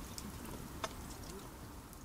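Liquid pours into a metal pot.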